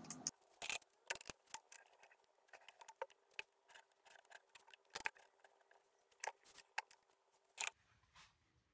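A tool scrapes and ticks against spinning wood in short bursts.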